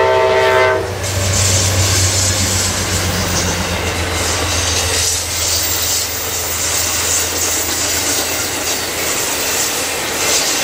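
Train wheels clatter and screech on the rails as the cars roll past.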